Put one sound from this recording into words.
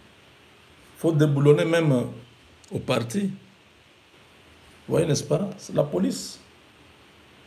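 A man speaks close by in a low, earnest voice.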